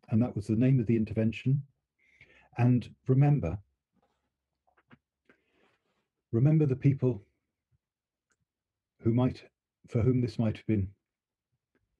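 A middle-aged man speaks calmly in pauses over an online call.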